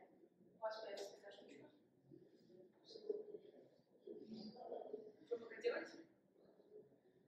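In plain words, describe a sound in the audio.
A young woman speaks calmly in a room with some echo, a little distance away.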